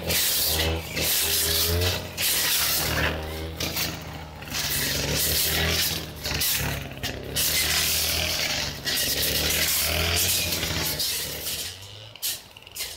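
A brush cutter engine roars loudly while cutting through weeds.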